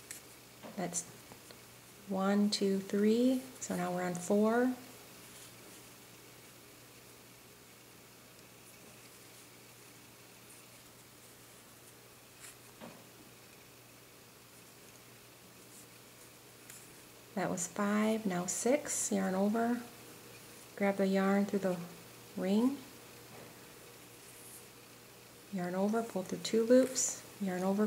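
A crochet hook softly rustles through yarn.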